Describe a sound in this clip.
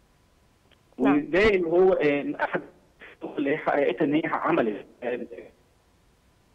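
A woman speaks calmly and clearly into a studio microphone.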